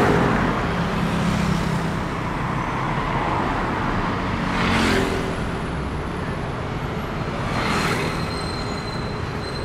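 Cars and motorbikes drive past on a busy street.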